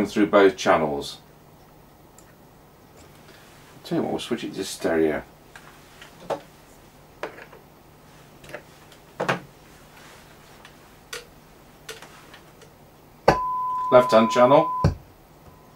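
An amplifier hums low and steadily.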